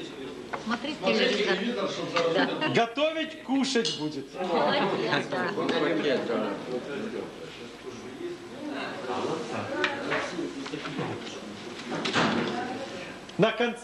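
A crowd of men and women talks and laughs nearby.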